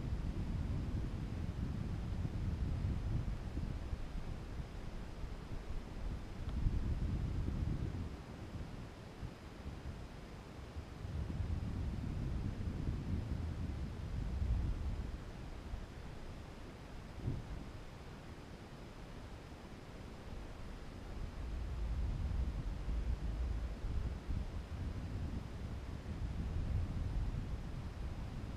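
Wind buffets and rumbles against the microphone in uneven gusts.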